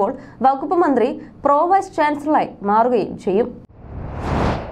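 A young woman speaks calmly and clearly into a microphone, close by.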